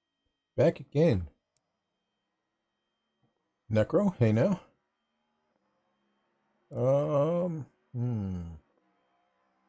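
A man talks calmly into a microphone in short phrases.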